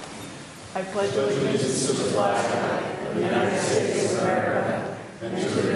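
A crowd recites together in unison in an echoing hall.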